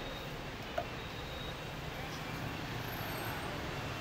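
A car boot lid shuts with a thud.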